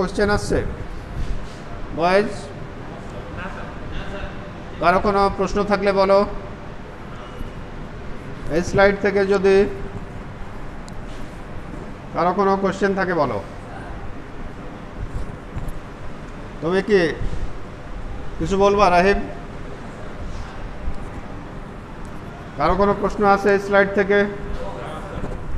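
A man speaks loudly in short phrases nearby.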